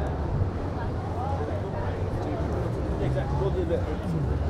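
People chatter at a distance outdoors.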